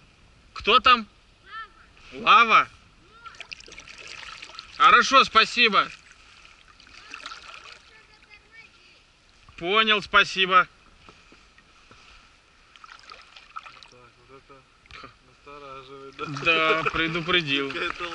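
Water ripples softly against a small boat gliding on a river.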